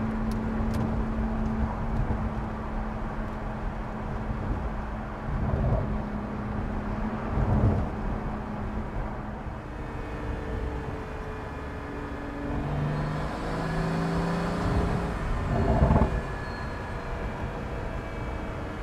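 A sports car engine roars steadily as the car speeds along.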